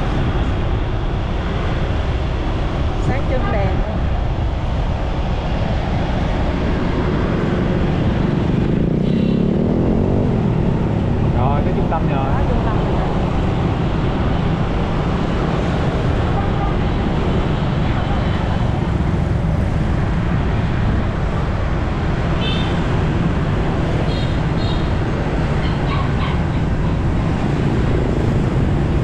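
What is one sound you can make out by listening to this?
Wind rumbles loudly against a moving rider.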